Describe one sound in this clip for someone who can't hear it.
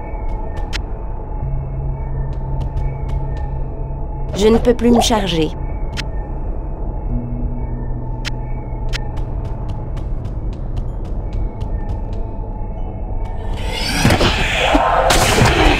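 Low, droning music plays steadily.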